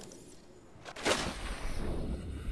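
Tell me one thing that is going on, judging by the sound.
Water splashes as something plunges in.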